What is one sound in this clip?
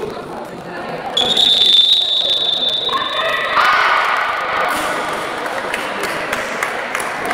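Young men call out and cheer nearby.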